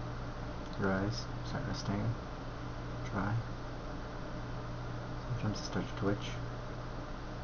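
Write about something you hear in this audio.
A young man speaks calmly and close to the microphone, in short bursts.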